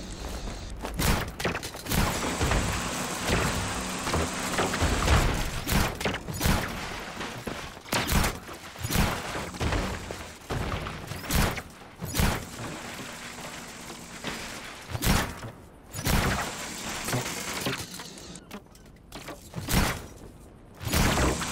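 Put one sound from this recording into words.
Loud thuds and bangs of metal hitting stone come again and again.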